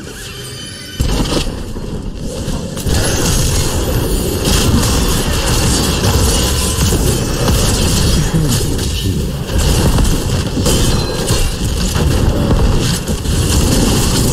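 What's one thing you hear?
Magic blasts and blows clash in a busy fight.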